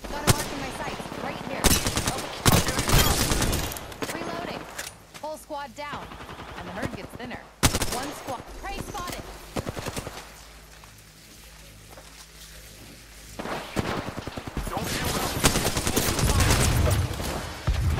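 Rapid gunfire bursts ring out in quick volleys.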